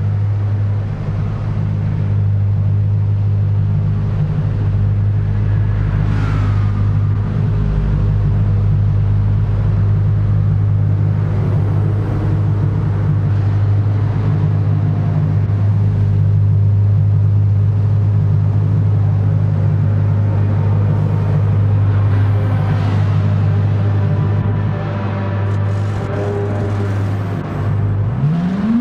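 A race car engine idles with a steady, deep hum.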